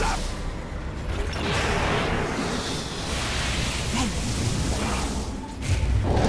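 Game characters clash in combat with hits and impacts.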